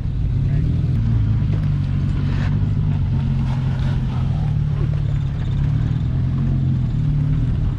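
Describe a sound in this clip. Tyres crunch and scrape on rock.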